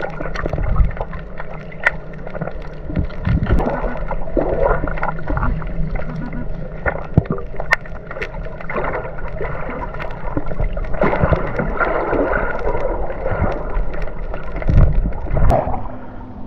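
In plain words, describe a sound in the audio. Water rumbles and gurgles in a low, muffled way, as if heard underwater.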